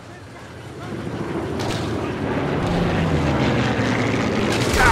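A propeller plane drones overhead, growing louder.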